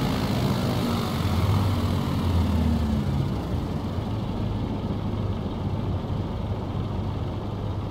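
A small propeller plane's engine drones steadily, easing slightly quieter after a few seconds.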